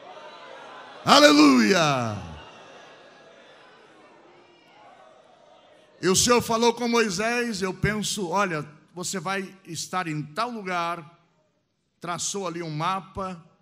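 A middle-aged man preaches with animation through a microphone, his voice rising and falling.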